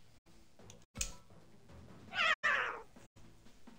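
A short electronic blip sounds as a menu choice is picked.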